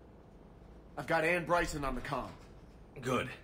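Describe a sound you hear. A second man speaks firmly, close by.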